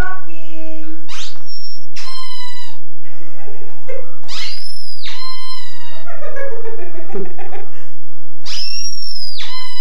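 A dog howls in long, wavering notes.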